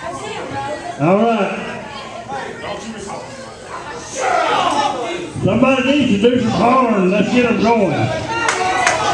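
Men shout loudly from close by.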